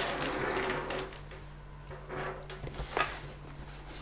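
A cardboard box slides across a wooden table.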